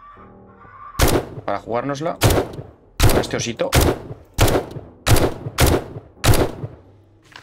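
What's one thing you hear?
Gunshots fire in a rapid series.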